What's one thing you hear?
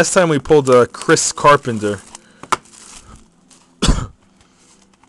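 Plastic wrap crinkles as it is pulled off.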